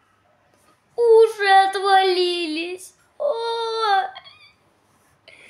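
A young boy speaks in a squeaky, playful voice close by.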